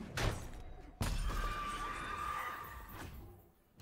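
A game spell effect whooshes and chimes.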